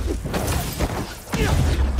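Heavy blows thud and crash in a fight.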